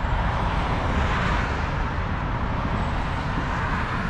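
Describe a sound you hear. A passing car's tyres hiss on the road.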